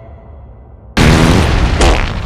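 A gas cloud hisses out in a burst.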